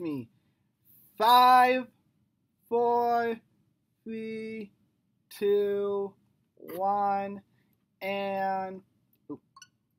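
A young man sings a series of short held notes close by.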